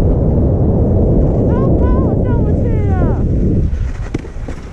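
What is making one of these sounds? Wind rumbles against the microphone, then dies down.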